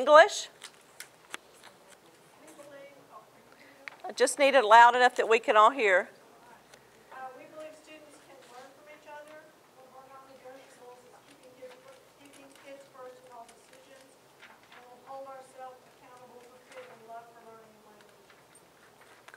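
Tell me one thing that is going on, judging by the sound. A middle-aged woman speaks calmly in a room, a little distant.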